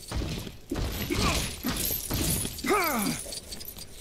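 Stone blocks crash and clatter as they break apart.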